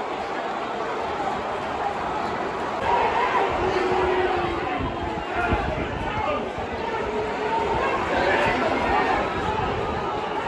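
A large stadium crowd cheers and chants loudly all around.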